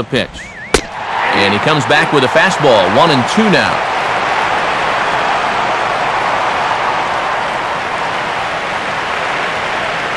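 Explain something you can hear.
A stadium crowd cheers loudly, then settles.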